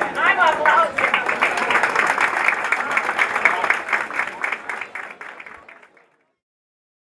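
A group of people claps hands in quick applause.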